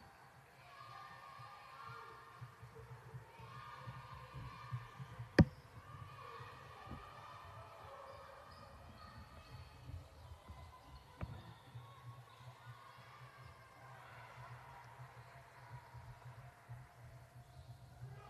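Young women call out and chatter nearby.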